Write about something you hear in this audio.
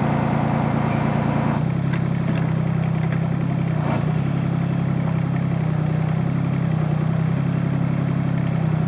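A small excavator's diesel engine chugs steadily close by.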